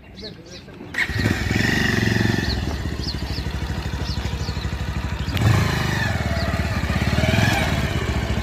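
A motorcycle engine idles with a steady, rapid putter close by.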